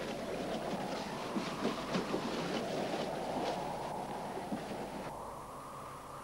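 A cloth scrubs rhythmically across a wooden surface.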